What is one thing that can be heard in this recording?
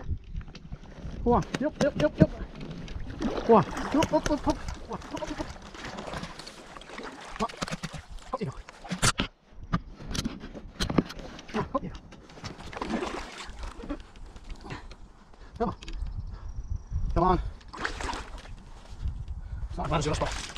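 A paddle dips and splashes in shallow water.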